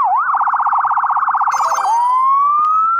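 An ambulance siren yelps rapidly.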